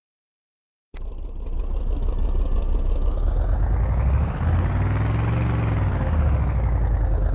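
A vehicle engine roars, rising and falling in pitch.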